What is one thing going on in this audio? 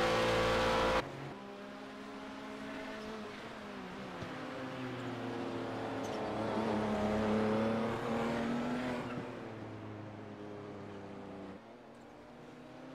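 A racing car engine drones from a distance, rising and falling.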